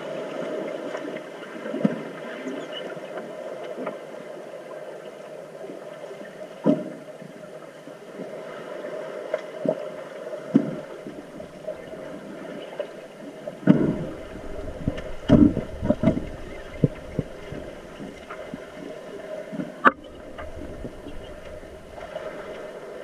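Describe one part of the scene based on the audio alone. Swimmers splash and thrash, heard muffled underwater, with irregular dull thumps.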